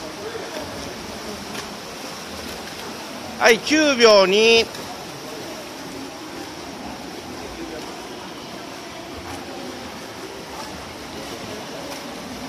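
Swimmers splash steadily through the water in a large echoing hall.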